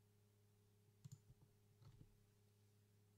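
A short computer game sound effect plays.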